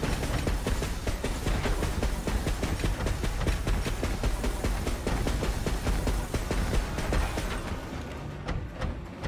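Heavy metal footsteps stomp and clank rhythmically.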